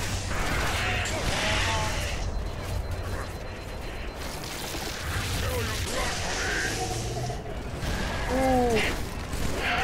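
Alien creatures screech and squeal.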